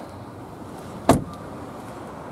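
A car door slams shut with a solid thud.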